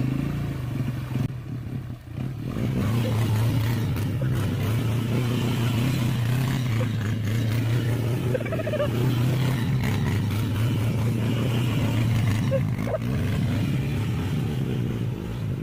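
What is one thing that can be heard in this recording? A quad bike engine revs and idles close by.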